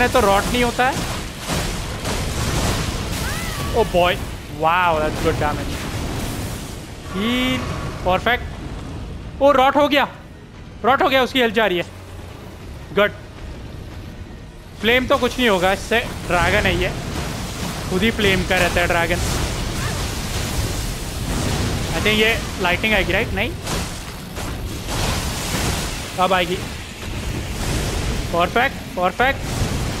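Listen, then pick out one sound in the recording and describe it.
A dragon roars loudly.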